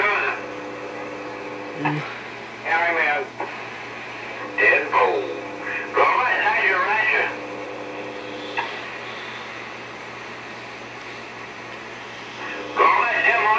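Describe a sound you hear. Static hisses steadily from a radio receiver.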